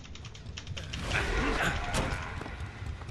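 A smoky whoosh bursts out.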